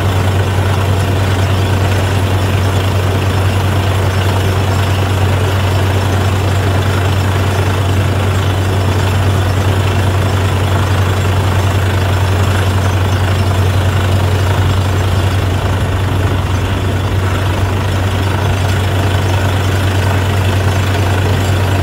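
Compressed air blasts a steady rushing hiss of dust and water from a borehole.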